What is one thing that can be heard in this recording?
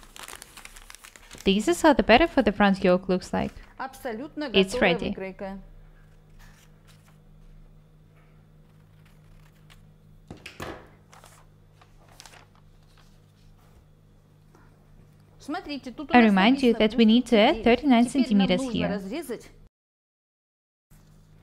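Paper rustles on a table.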